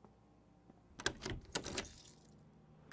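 A door chain rattles.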